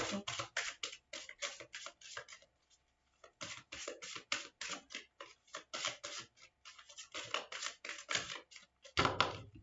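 Playing cards are shuffled with quick, rapid flicks.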